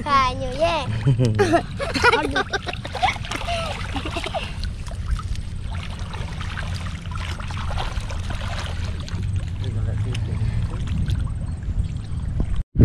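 Water splashes as children move about in it.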